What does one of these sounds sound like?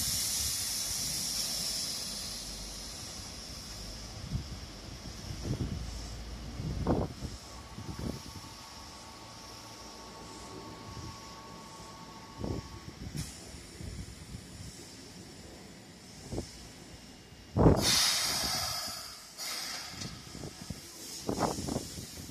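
A train rolls slowly past on the rails.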